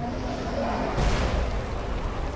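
A heavy object lands with a dull thud.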